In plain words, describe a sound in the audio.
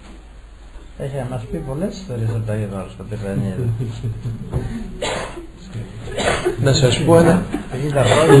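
An elderly man chants in a deep, steady voice.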